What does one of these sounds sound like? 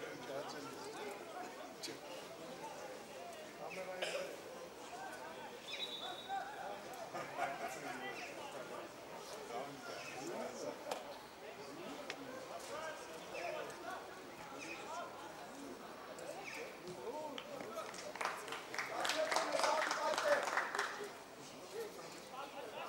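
Football players shout and call to each other across an open field outdoors.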